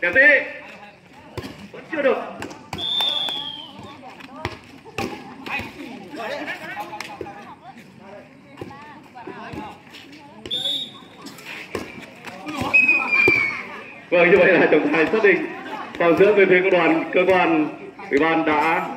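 A volleyball thumps against players' hands.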